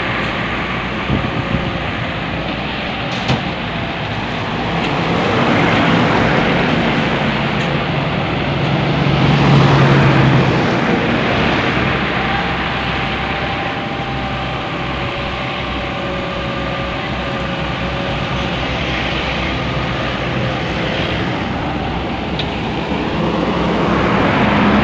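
An excavator engine rumbles steadily and revs up at times.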